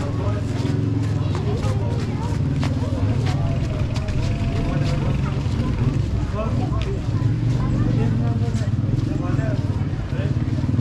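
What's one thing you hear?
Footsteps shuffle on a paved street.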